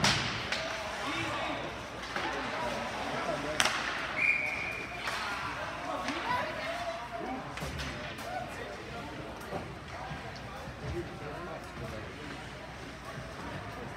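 Skates scrape across ice in a large echoing rink.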